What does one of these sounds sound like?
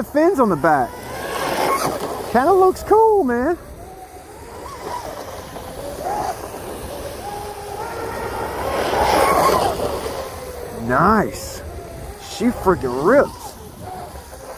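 A small model boat's motor whines and revs up and down across water.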